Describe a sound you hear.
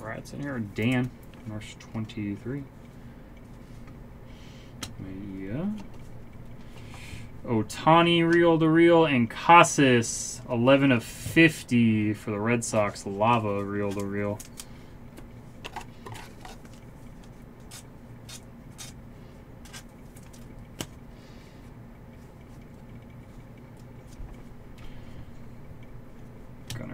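Card packs and cards rustle and crinkle in someone's hands.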